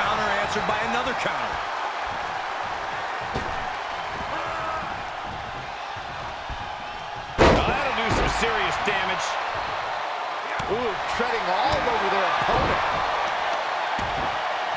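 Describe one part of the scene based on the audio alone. A large arena crowd cheers and roars.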